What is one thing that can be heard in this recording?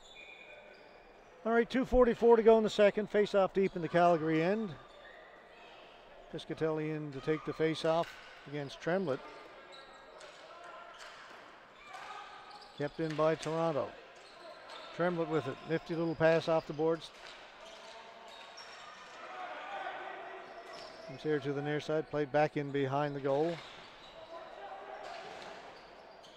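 Hockey sticks clack against a ball on a hard floor in a large echoing hall.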